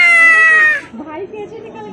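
A young boy shouts loudly up close.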